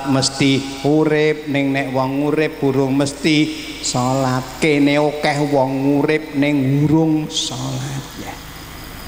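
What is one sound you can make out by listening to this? An elderly man sings into a microphone, his voice amplified through loudspeakers.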